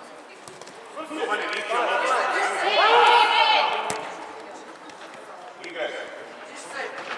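Children shout and cheer loudly in an echoing indoor hall.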